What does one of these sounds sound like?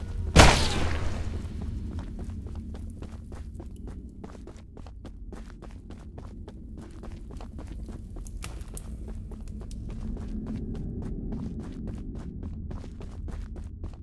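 Footsteps tread steadily on a hard stone floor, echoing slightly.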